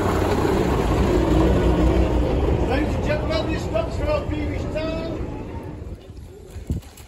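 A bus engine rumbles loudly close by, then fades away.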